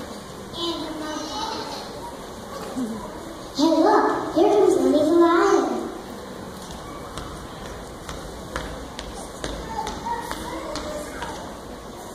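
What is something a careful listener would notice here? A young woman speaks into a microphone, heard over loudspeakers in a large hall.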